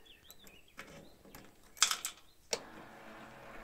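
A key clicks in an ignition switch.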